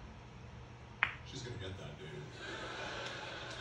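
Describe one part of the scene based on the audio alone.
Pool balls clack together and roll across the table.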